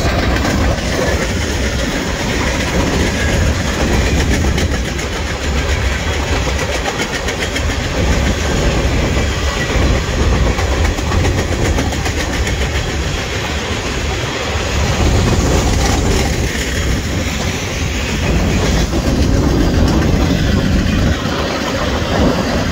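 A long freight train rumbles past close by, wheels clattering on the rails.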